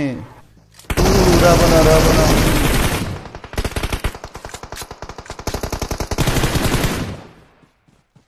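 Gunshots crack in rapid bursts from a video game.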